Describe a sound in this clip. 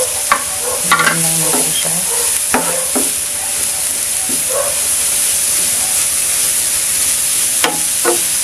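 A wooden spatula scrapes and knocks against a pan.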